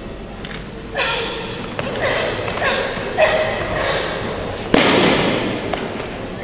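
A young man shouts sharply in a large echoing hall.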